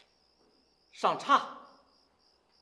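A man exclaims loudly and with animation, close by.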